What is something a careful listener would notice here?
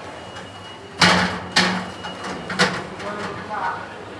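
Elevator doors slide shut with a thud.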